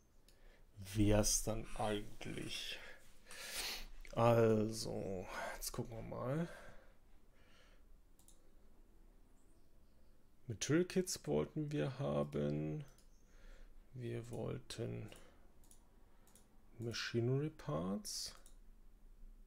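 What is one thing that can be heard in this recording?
A man talks calmly and close to a microphone, with pauses.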